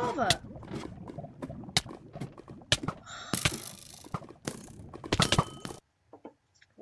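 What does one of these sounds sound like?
Lava crackles and hisses nearby.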